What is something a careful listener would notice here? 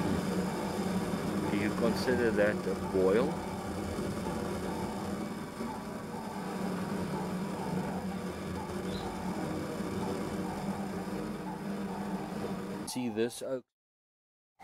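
A gas flame roars steadily under a pot.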